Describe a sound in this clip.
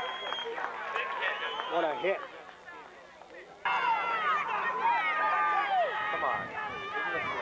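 Young boys shout and chatter excitedly nearby, outdoors.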